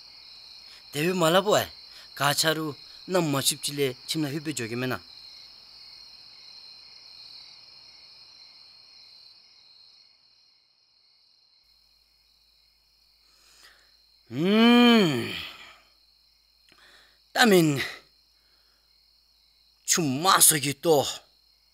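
A young boy speaks calmly and clearly.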